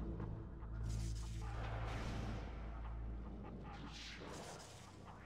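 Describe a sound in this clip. A deep electronic drone rumbles and then fades.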